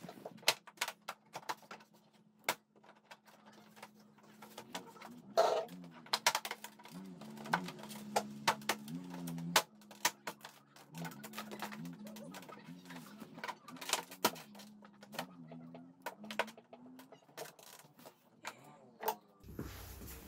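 Plastic body panels click and knock as they are pressed into place.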